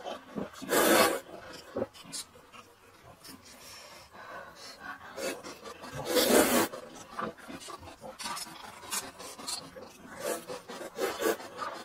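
A young man slurps noodles loudly, close up.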